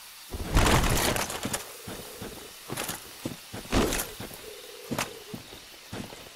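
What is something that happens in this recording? Armoured footsteps thud on soft ground.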